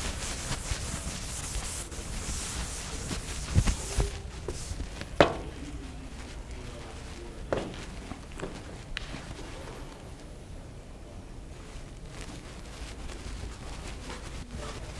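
A man speaks calmly in a room with some echo.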